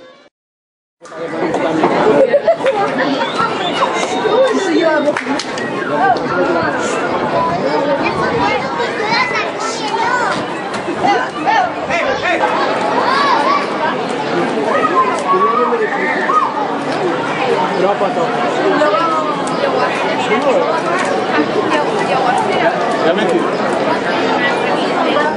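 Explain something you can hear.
A crowd of people chatters outdoors, with many voices of children and adults talking at once.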